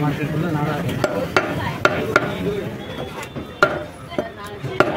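A cleaver chops through meat onto a wooden block with sharp thuds.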